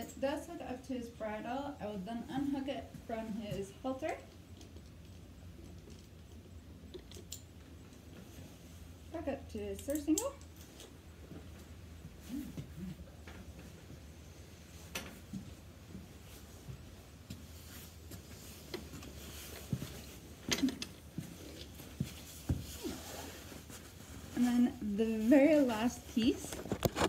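A woman speaks calmly, explaining, close by.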